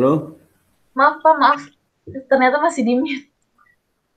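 A young woman speaks over an online call.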